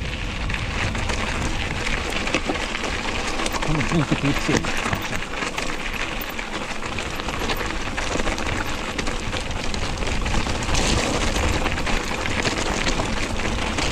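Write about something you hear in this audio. A bicycle frame rattles and clanks over bumps.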